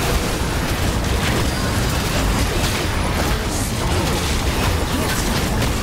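Video game spell effects whoosh and clash in a busy fight.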